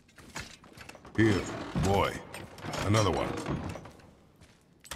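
Heavy wooden doors creak and groan as they swing open.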